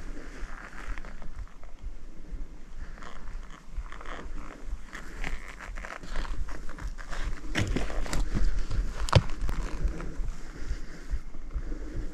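Clothing rustles as a person moves.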